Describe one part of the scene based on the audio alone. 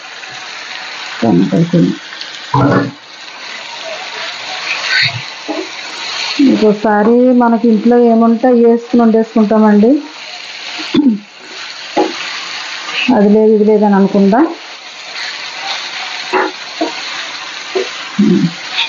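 Food sizzles in a hot pan.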